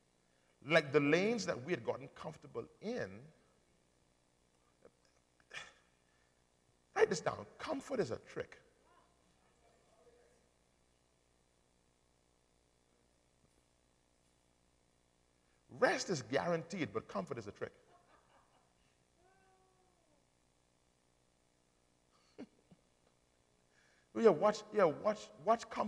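A man preaches with animation through a microphone, in bursts with long pauses.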